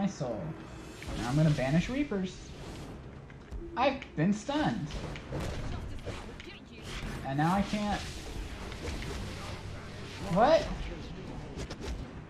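A young man talks casually into a close microphone.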